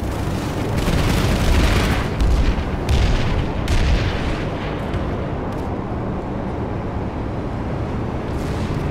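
A heavy vehicle engine rumbles steadily as it drives.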